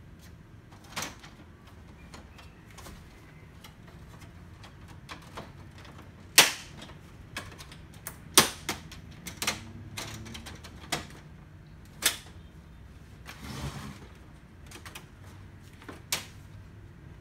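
A screwdriver clicks and scrapes against a plastic case.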